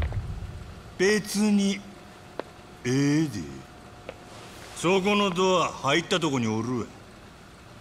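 A man speaks in a loose, teasing voice, close by.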